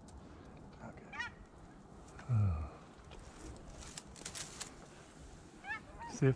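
Dry branches rustle and snap close by.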